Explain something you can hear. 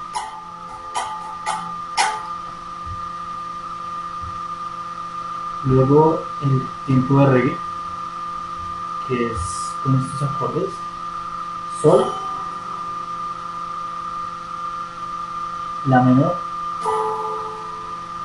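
An electric guitar plays short chords and notes.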